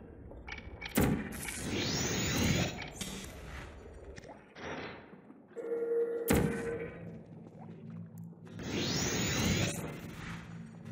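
A sci-fi energy gun fires with a sharp zap and a fizzing whoosh.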